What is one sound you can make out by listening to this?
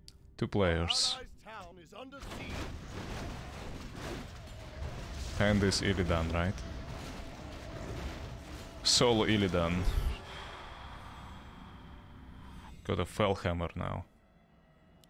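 A man speaks with animation into a nearby microphone, in short bursts.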